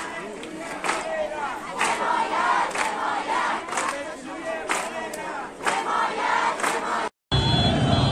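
A large crowd chants loudly in unison outdoors.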